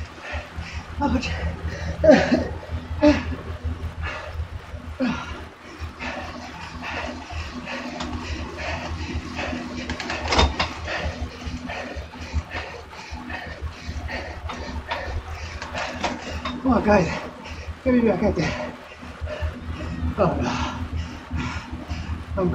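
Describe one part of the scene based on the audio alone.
A young woman talks breathlessly close to a microphone.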